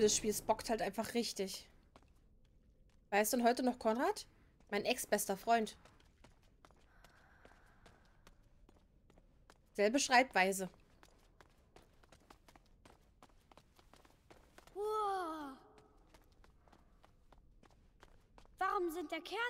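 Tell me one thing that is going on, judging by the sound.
Footsteps patter quickly on a stone floor.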